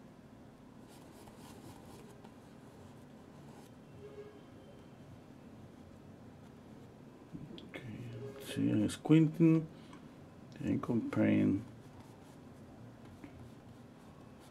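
A paintbrush softly brushes paint across canvas.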